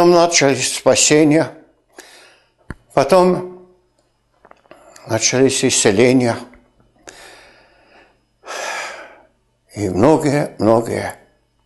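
An older man speaks calmly and closely into a microphone, with pauses.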